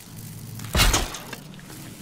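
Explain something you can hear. Tall grass rustles as someone crouches through it.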